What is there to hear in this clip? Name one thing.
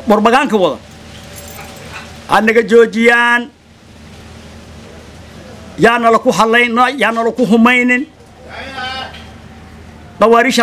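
An elderly man speaks with emphasis, close to a microphone.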